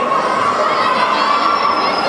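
A young girl shouts nearby.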